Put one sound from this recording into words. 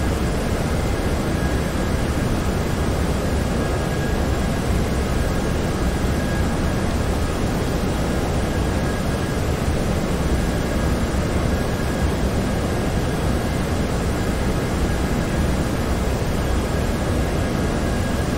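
Jet engines drone steadily with a low, even roar.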